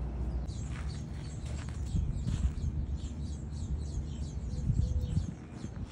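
A cat's paws crunch softly on gravel.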